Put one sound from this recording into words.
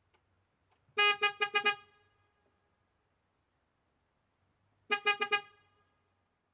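A toy train whistle toots in quick bursts.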